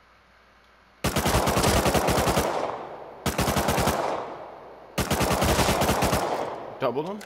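A rifle fires several long rapid bursts, echoing outdoors.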